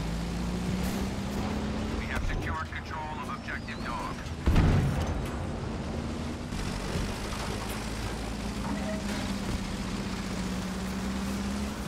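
A tank engine drones steadily nearby.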